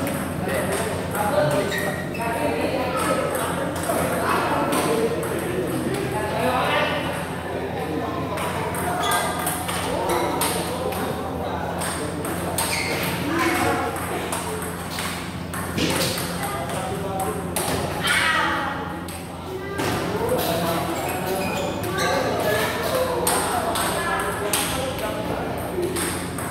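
Several people chatter nearby in an echoing hall.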